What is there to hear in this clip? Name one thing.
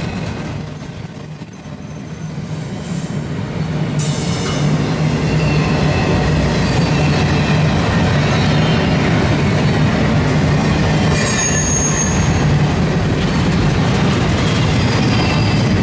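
Steel wheels squeal and clatter on the rails.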